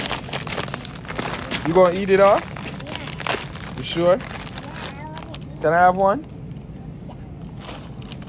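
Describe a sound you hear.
A bag of chips crinkles in a man's hands.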